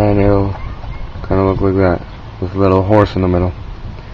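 A plastic wheel cap clicks into place.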